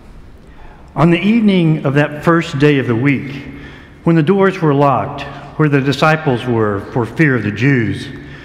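An elderly man speaks steadily into a microphone.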